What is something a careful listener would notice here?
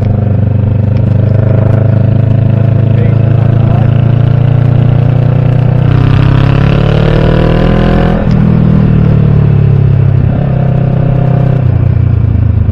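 A motorcycle engine rumbles steadily close by, its pitch rising and falling as it speeds up and slows.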